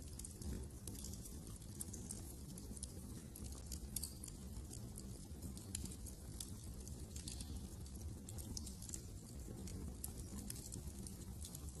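A fire crackles and pops close by, with a low steady roar.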